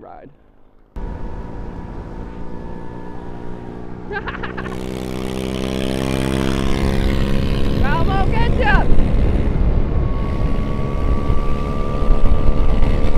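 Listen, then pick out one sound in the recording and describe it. A motorbike engine hums and whines louder as it speeds up.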